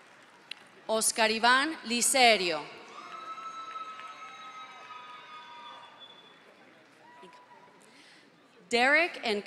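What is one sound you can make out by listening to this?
A man announces through a loudspeaker in a large echoing hall.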